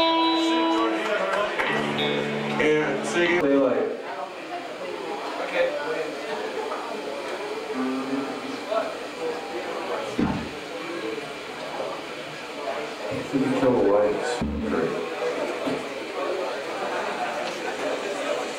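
A rock band plays loudly through amplifiers.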